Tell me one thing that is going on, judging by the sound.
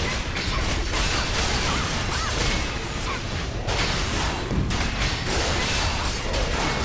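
Swords clash and magic blasts crackle in a fast fight.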